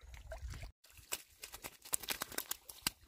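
A fish flaps and slaps against dry straw.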